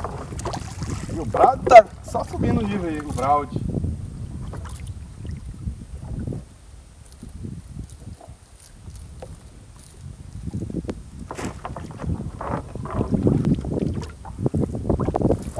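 Water drips and trickles from a wet fishing net.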